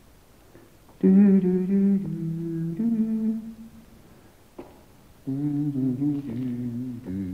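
An organ plays sustained chords.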